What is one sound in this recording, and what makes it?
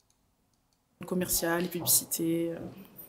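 A young woman speaks into a handheld microphone.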